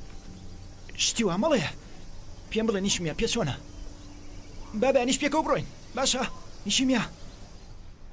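A teenage boy speaks with emotion.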